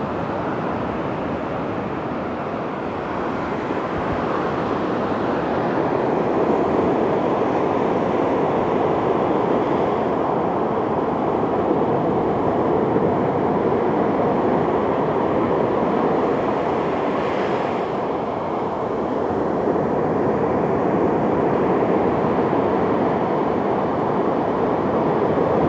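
Small waves wash and fizz steadily onto the shore.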